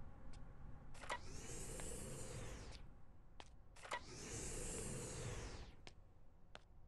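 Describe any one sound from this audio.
A heavy sliding door whooshes open and shut with a mechanical hiss.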